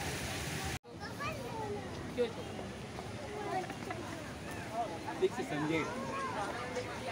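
Young people chatter and call out nearby outdoors.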